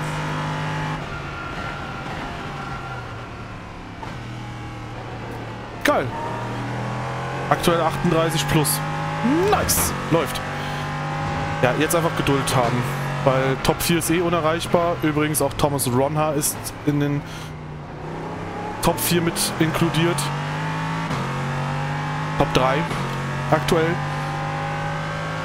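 A racing car engine drones steadily, changing pitch with the gears.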